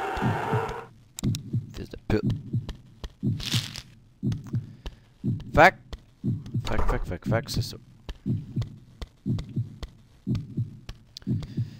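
Footsteps tap on a hard tiled floor.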